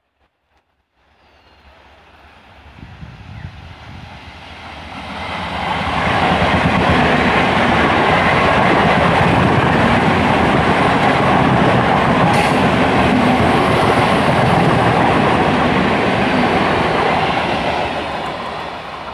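An electric train approaches and rushes past close by with a loud rumble.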